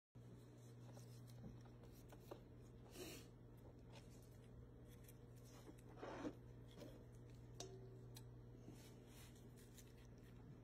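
A knife slices through raw meat with soft wet sounds.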